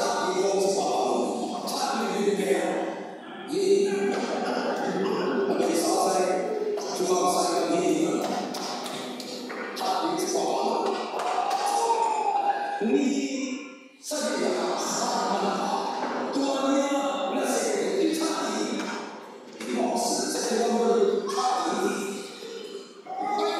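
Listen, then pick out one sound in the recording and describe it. A man speaks with animation through a microphone and loudspeakers in a room with some echo.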